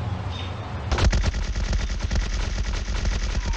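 A gun fires in rapid shots.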